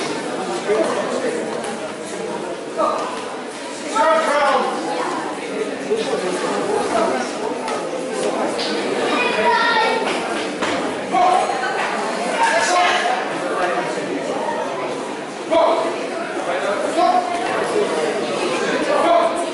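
Feet shuffle and thud on a mat.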